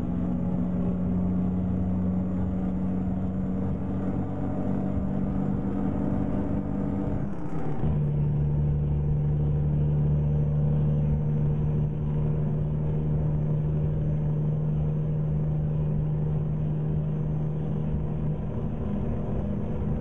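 A truck engine drones steadily, dropping briefly in pitch as the gear changes.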